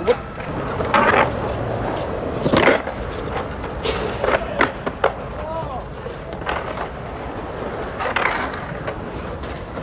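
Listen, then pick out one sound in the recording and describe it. A skateboard clacks and scrapes against a concrete edge.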